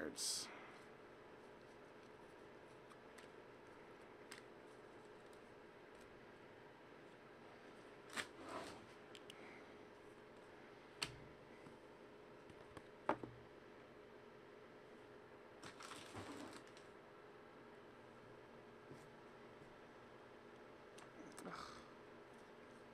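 Cardboard boxes knock and rustle as hands handle them.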